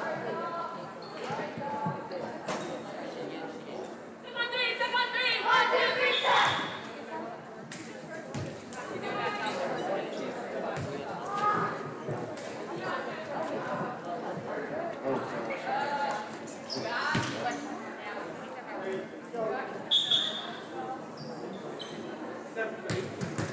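Many voices chatter and call out in a large echoing gym.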